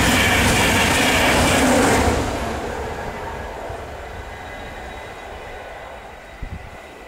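A train rushes past at speed and fades away.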